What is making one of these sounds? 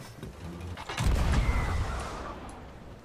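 A cannon fires with a deep boom.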